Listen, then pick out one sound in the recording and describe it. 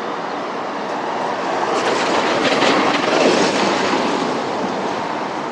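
A bus rolls past close by with a loud whoosh.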